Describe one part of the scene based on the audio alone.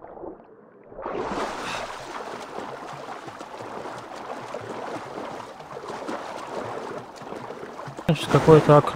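Water splashes loudly as a swimmer breaks the surface and climbs out.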